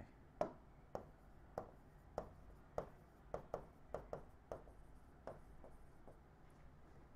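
A pen taps repeatedly on a board while writing.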